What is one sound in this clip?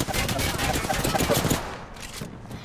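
Explosions boom and roar nearby.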